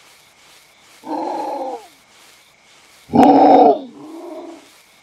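A wolf gives short, falling howls.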